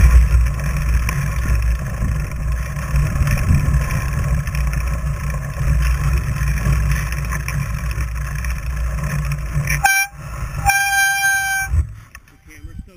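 Bicycle tires crunch and rumble over packed snow.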